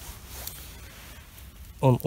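Dry pine needles rustle as a hand picks a mushroom from the ground.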